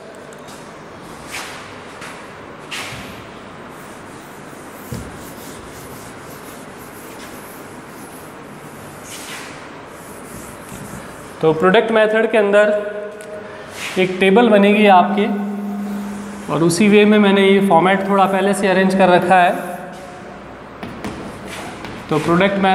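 Chalk taps and scrapes on a board.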